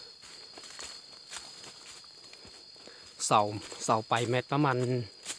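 Footsteps crunch on dry leaves along a path.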